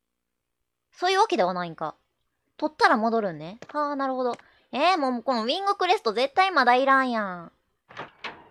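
A young woman talks with animation through a microphone.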